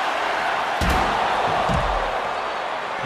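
A body slams hard onto the floor with a heavy thud.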